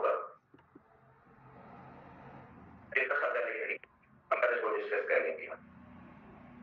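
A man speaks clearly into a clip-on microphone, with animation.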